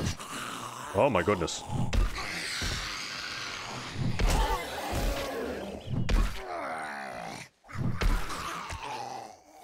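A hammer strikes flesh with heavy thuds.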